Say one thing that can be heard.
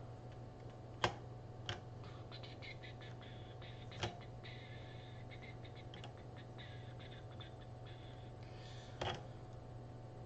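Small plastic parts click and knock as a screwdriver works on them.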